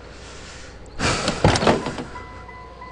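A car door opens with a clunk.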